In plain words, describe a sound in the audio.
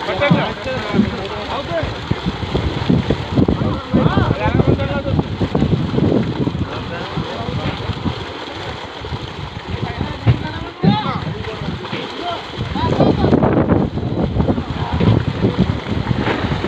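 Water splashes as fish thrash in a net.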